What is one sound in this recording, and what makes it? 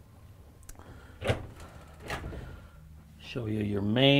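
A cabinet door clicks open.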